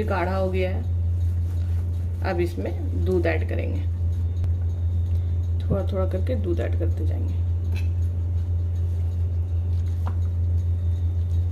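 A spatula stirs and scrapes thick dough in a glass bowl.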